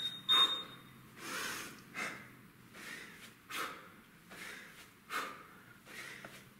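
A man breathes hard in rhythm while swinging a weight.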